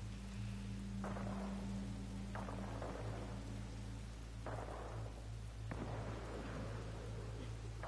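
Boots thud on metal ladder rungs.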